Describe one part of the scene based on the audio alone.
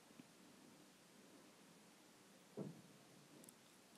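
A spoon scrapes around a bowl.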